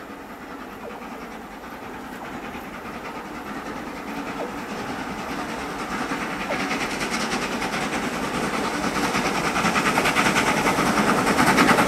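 Train wheels rumble and clatter on the rails, getting closer.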